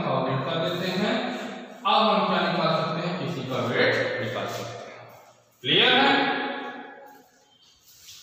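A man speaks loudly and with animation, as if lecturing, nearby.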